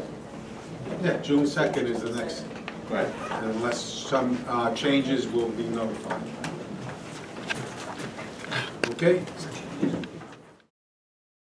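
A man speaks calmly into a microphone.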